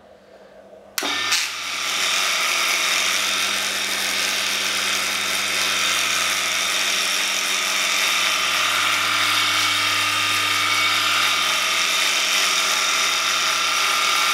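A small electric water pump starts up and runs with a steady hum and whine.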